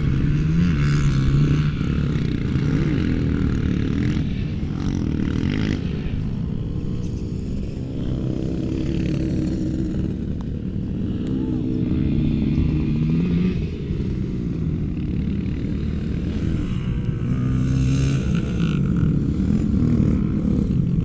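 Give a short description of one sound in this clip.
Car engines rev and roar in the distance, rising and falling in pitch.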